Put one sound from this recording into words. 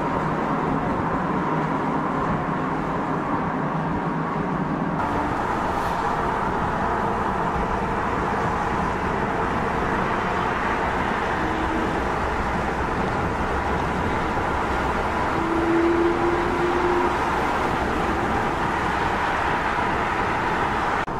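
A sports car engine roars as it drives along.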